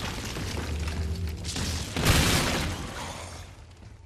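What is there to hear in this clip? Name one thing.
A grenade explosion blasts loudly.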